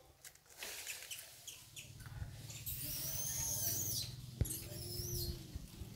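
Dry leaves rustle and crackle close by.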